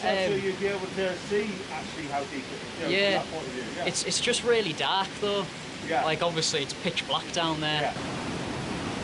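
A young man speaks calmly and closely.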